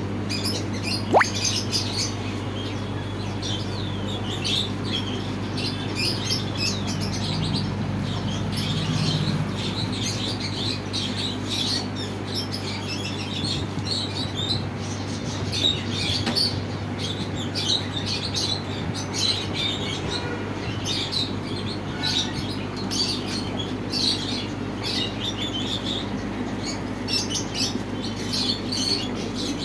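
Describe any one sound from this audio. Aquarium pumps hum steadily and low.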